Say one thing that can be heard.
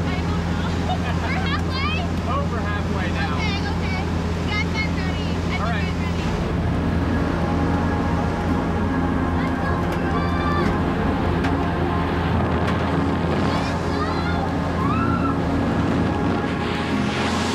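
A plane's engine drones steadily.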